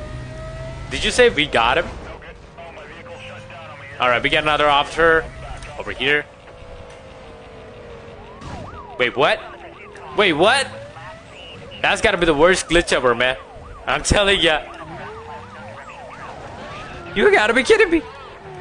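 A young man talks excitedly into a microphone in short bursts.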